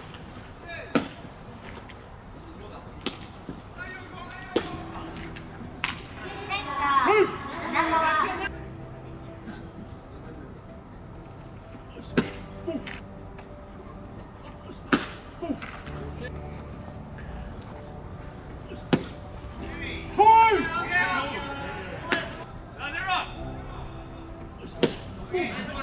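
A baseball smacks into a catcher's mitt with a sharp pop, over and over.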